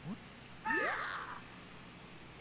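A cartoonish video game sound effect rises as a game character leaps.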